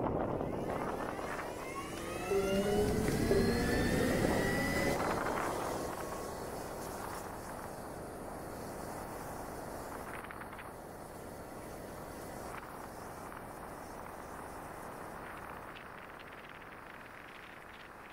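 Wind rushes steadily past a moving motorcycle.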